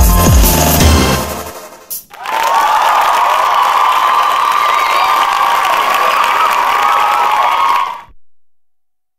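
Upbeat dance music plays.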